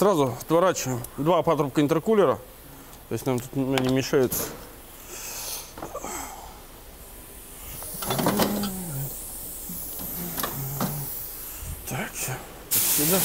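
Metal tools clink against an engine part.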